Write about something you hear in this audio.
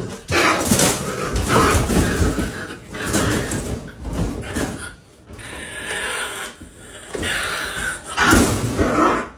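A wire cage rattles and clanks as it is handled.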